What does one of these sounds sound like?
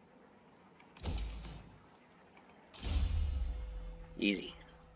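A soft whoosh sounds as a game menu opens.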